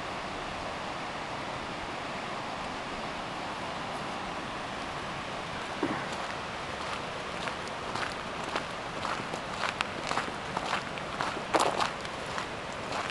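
A mountain stream rushes steadily in the distance.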